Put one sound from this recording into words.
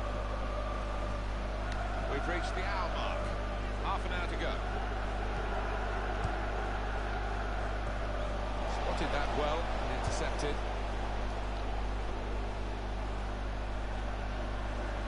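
A large crowd murmurs steadily in a big open stadium.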